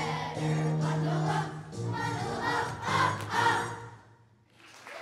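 A choir of children sings along with music.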